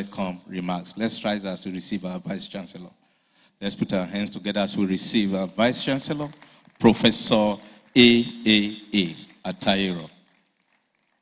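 A man speaks formally into a microphone over loudspeakers in a large echoing hall.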